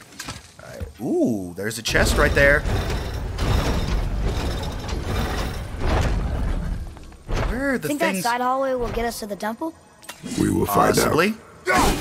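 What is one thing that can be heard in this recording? A man talks and laughs with animation into a close microphone.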